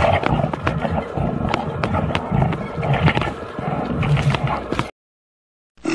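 Bears growl and snarl as they wrestle.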